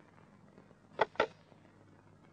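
A telephone handset is lifted with a clatter.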